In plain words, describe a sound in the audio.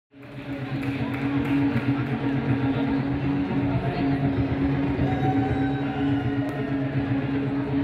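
A band plays music loudly with guitars and keyboards.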